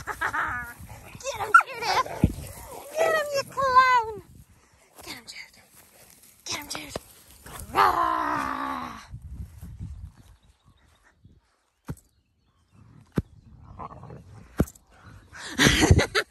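Dogs rustle through grass as they move about.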